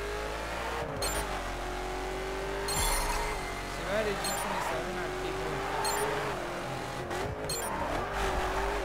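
A sports car engine roars at high speed, its pitch shifting as it changes gear.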